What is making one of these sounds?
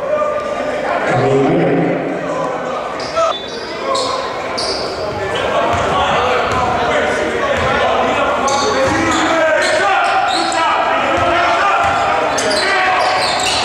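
A crowd cheers and chatters in an echoing gym.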